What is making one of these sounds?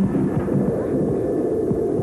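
A young woman cries out in alarm.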